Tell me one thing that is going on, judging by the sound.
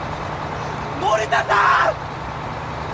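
A young man shouts loudly.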